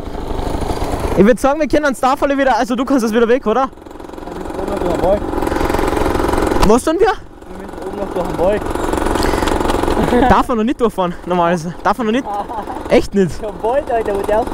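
Another motorbike engine idles and revs nearby.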